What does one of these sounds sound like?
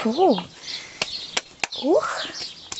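A wooden lid knocks against wood as it swings open.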